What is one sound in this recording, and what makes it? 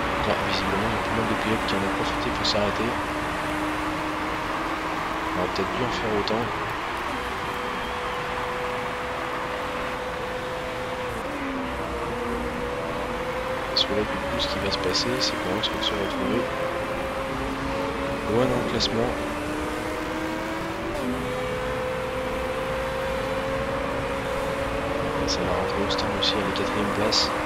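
Racing car engines drone and whine as cars drive past, their pitch sliding up and down.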